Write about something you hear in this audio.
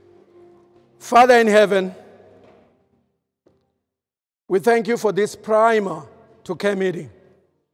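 A man preaches with fervour through a microphone and loudspeakers.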